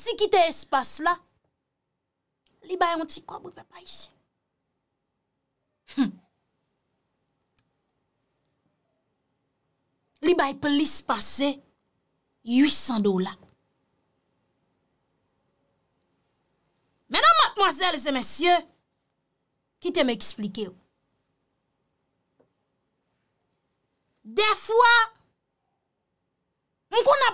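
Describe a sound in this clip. A young woman speaks close to a microphone in short, expressive bursts with pauses between them.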